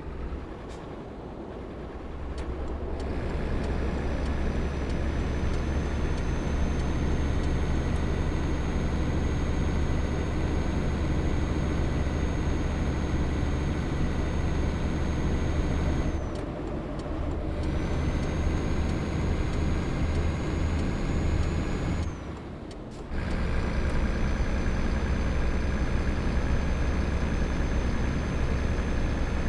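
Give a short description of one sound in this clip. A truck engine hums with a deep, steady drone, dipping briefly as the gears change.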